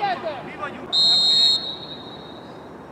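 A referee's whistle blows sharply once.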